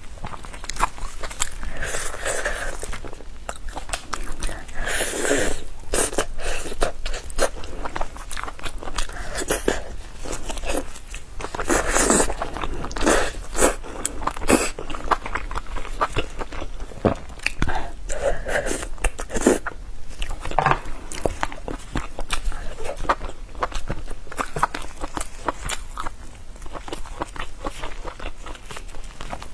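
Plastic gloves crinkle as hands tear food.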